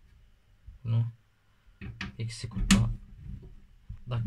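A metal plug clicks into a socket.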